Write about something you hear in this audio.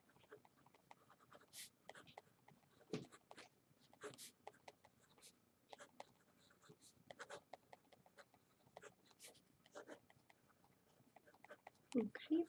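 A marker squeaks and scratches on paper in short strokes.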